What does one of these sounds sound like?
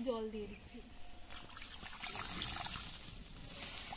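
Water pours into a metal pan.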